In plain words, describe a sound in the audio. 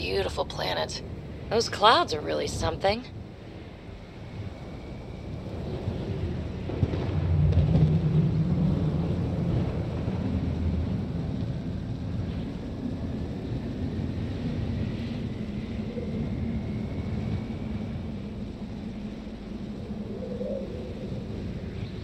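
A vehicle engine rumbles low and steady.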